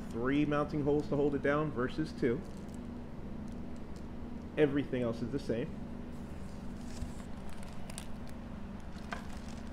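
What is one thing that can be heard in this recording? Plastic wrapping crinkles as a man handles it.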